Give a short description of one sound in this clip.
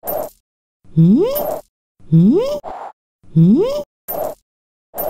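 A cartoon character lets out rising squeals when it bumps into things.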